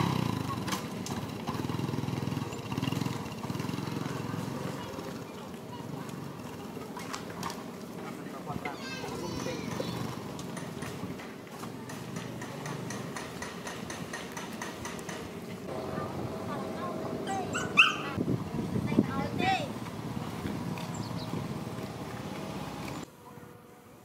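A motorbike engine idles nearby.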